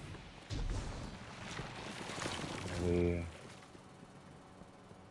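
Quick footsteps patter as a character runs.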